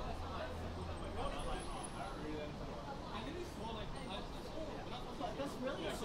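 Many voices of men and women chatter nearby.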